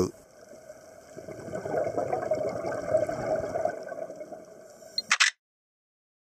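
Scuba regulator bubbles gurgle and rush upward underwater.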